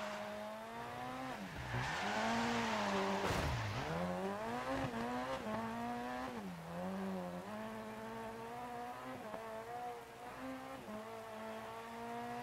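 A rally car engine revs hard, rising and dropping in pitch as it shifts gears.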